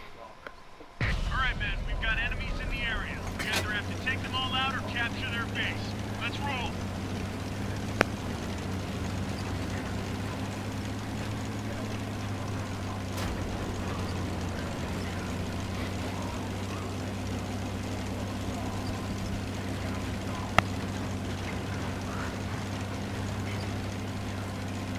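A tank engine rumbles and drones steadily.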